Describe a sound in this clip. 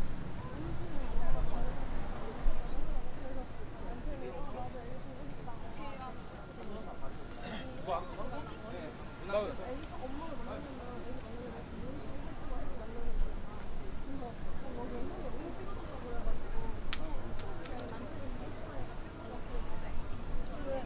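Young women talk with each other while walking close by.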